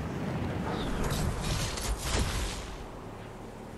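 A whooshing burst sounds as a game character dives.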